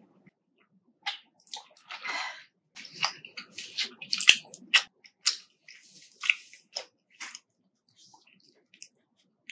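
Crispy fried food crackles and rustles as fingers handle it close to a microphone.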